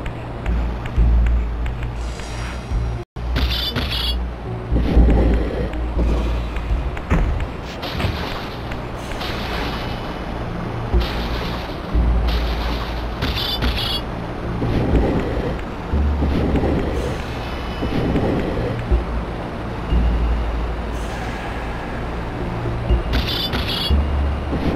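A heavy stone block scrapes and grinds across a stone floor.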